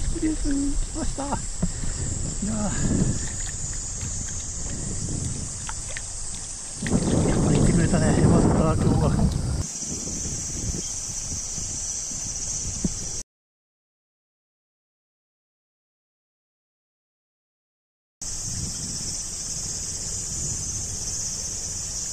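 Shallow water flows and burbles steadily close by, outdoors.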